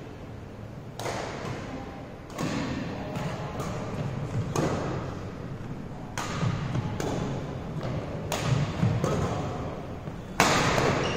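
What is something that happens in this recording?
Badminton rackets smack a shuttlecock back and forth in a large echoing hall.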